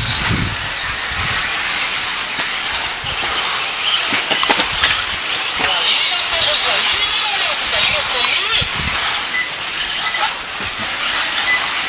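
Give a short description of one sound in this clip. Small electric motors of model cars whine high and buzz as they race around.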